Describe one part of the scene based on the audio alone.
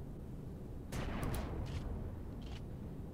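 A heavy cannon fires with a loud boom and a crackle of sparks.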